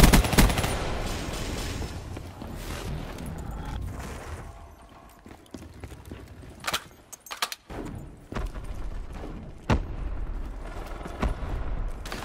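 Rifle shots crack.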